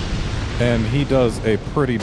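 Flames burst with a whooshing roar.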